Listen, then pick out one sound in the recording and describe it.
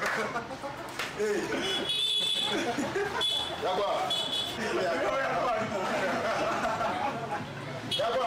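A young man laughs nearby.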